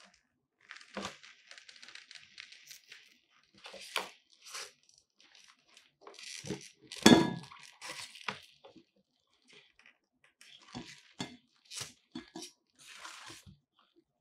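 A cable rattles and knocks against cardboard and plastic.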